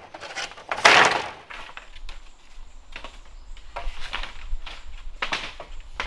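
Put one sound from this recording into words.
Dry leaves rustle under footsteps.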